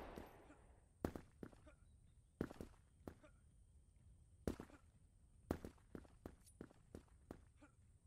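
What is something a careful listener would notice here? Footsteps tap steadily across hard ground.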